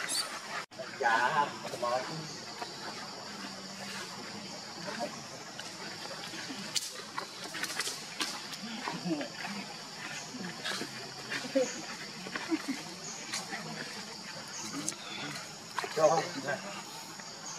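A baby monkey squeals in short high cries.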